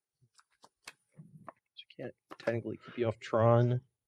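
Playing cards are shuffled.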